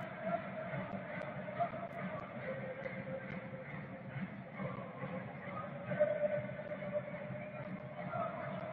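A stadium crowd chants and sings steadily in a large open space.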